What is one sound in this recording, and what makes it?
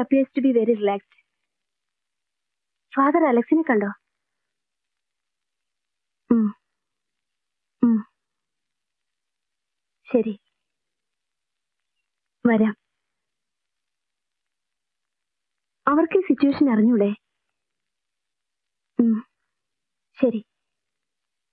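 A young woman speaks on a phone in short, hesitant phrases, close by.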